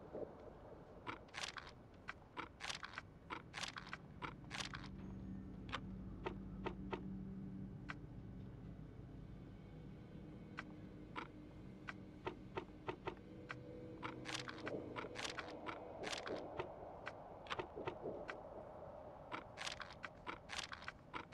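Short soft interface clicks tick as menu options change.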